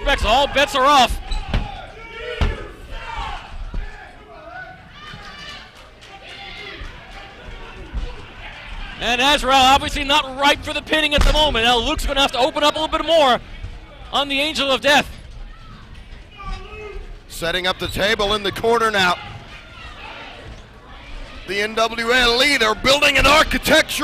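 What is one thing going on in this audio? Wrestlers' bodies slam onto a ring mat with heavy thuds.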